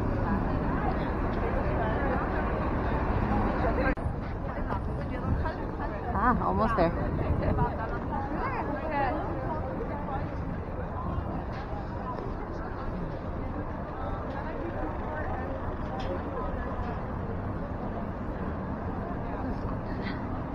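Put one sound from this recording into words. Footsteps shuffle on a pavement as a crowd walks outdoors.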